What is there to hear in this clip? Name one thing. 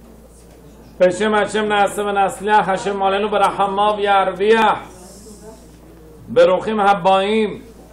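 A man chants in a steady, melodic voice close to a microphone.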